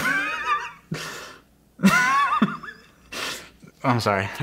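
A young man laughs into his hand close to a microphone.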